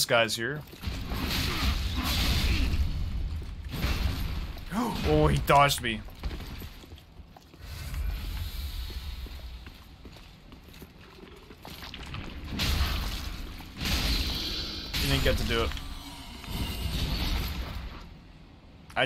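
Heavy weapon blows whoosh and clash in a fight.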